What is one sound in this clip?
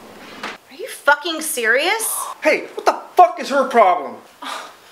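A young woman speaks loudly in a whiny voice.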